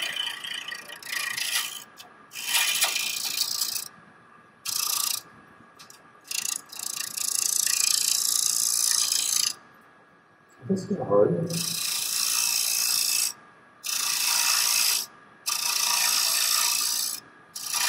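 A chisel scrapes and hisses against spinning wood on a lathe, in bursts.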